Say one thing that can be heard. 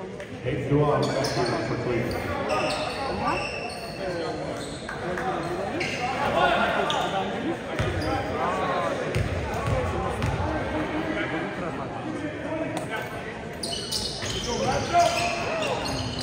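Many people talk and call out across a large echoing gym.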